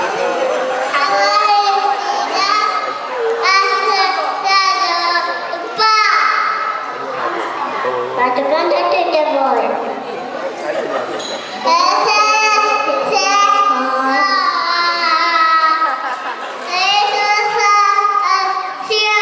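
A group of young children sing together.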